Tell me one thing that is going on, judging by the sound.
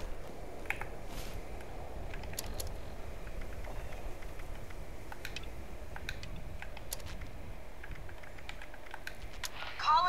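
Soft clicks tick now and then.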